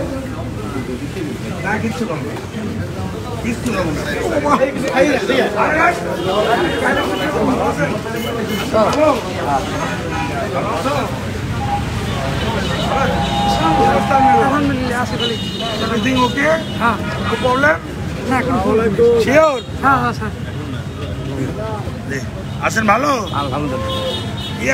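Several men talk over one another close by, with animation.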